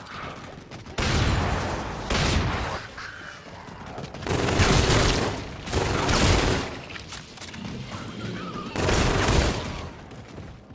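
Gunfire bursts out in loud bursts.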